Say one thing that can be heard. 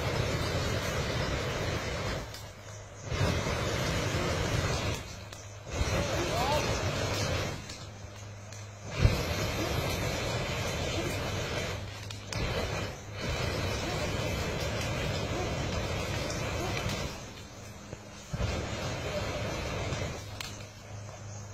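A flamethrower roars in bursts of fire outdoors.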